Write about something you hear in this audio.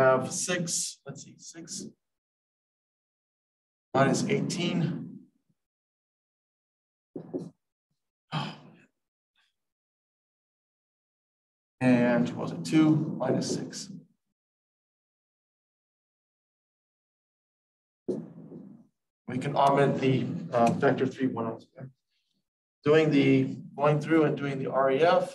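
A man speaks calmly, in bursts with pauses, close to a microphone.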